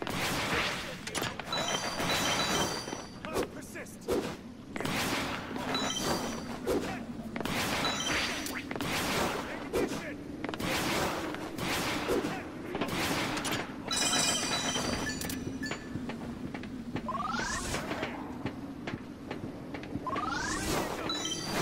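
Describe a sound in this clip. Energy blasts whoosh and crackle in short bursts.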